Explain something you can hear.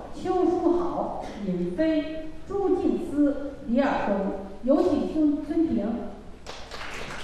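A middle-aged woman announces calmly through a microphone in a large echoing hall.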